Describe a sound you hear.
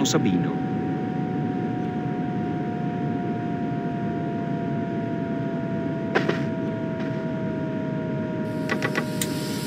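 An electric train motor whines steadily, its pitch slowly dropping.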